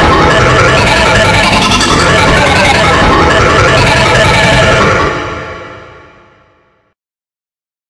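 A cartoonish male voice talks loudly and harshly, then fades away.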